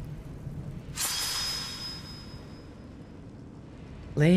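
A magical sword flares with a bright, shimmering chime.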